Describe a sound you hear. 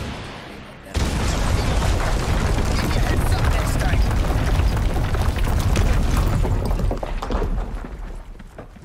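A loud explosion roars and slowly rumbles away.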